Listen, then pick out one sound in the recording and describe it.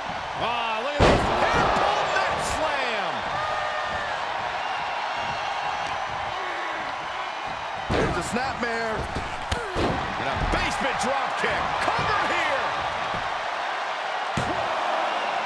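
Bodies thud heavily on a wrestling ring mat.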